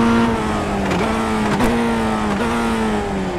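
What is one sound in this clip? Gears shift with short clunks as the car slows down.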